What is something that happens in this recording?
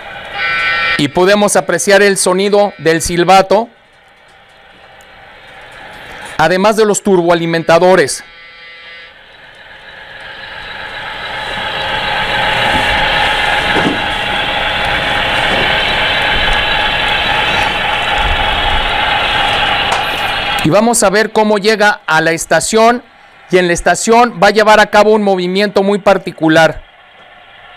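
A model train's horn sounds in short repeated blasts.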